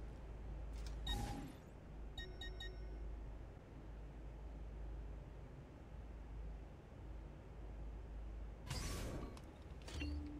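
A game menu opens and closes with soft whooshing chimes.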